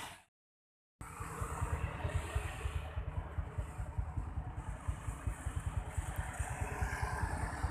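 A motorcycle engine hums as it rides past on a road.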